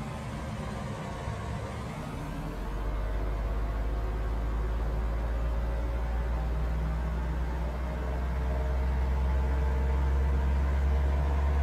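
A truck engine hums low and grows louder as it speeds up.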